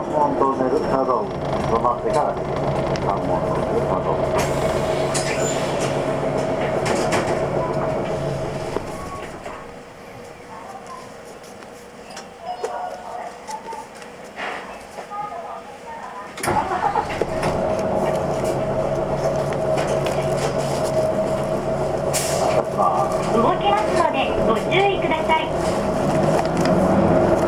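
A heavy truck engine drones and rumbles close by.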